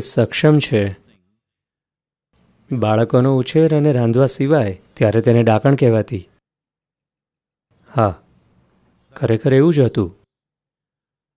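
An elderly man speaks calmly and thoughtfully into a close microphone, with pauses.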